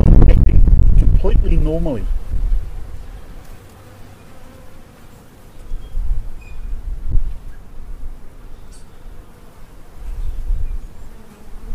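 Honeybees buzz softly around a hive entrance.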